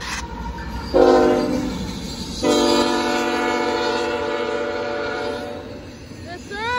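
A train horn blares loudly in two blasts.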